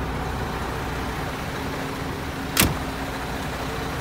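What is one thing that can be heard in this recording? A heavy truck door thuds shut.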